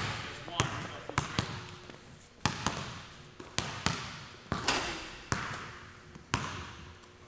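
Basketballs bounce on a hard floor in a large echoing hall.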